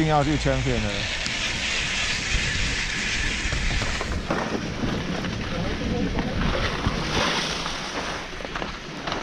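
Skis hiss and scrape over packed snow.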